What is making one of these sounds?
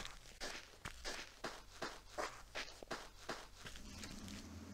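Footsteps crunch quickly on sand.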